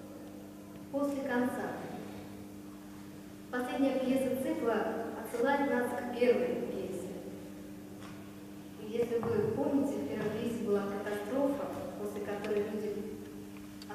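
A young woman speaks clearly, reading out in an echoing hall.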